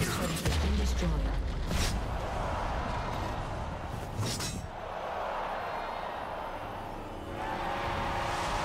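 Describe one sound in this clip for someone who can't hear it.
Game spells whoosh and crackle in a fight.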